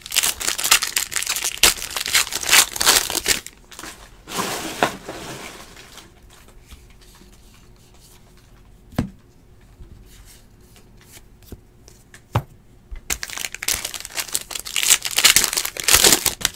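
A foil trading card pack crinkles and tears open.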